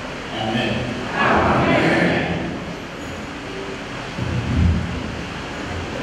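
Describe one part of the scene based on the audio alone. A man speaks calmly in a large echoing hall.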